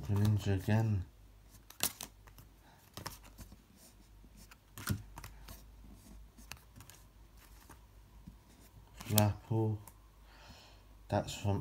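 Stiff playing cards rustle and flick as a hand shuffles them.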